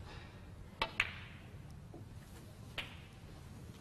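Snooker balls knock together with a sharp click.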